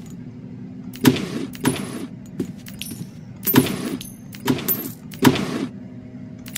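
Wooden drawers slide open with short knocks.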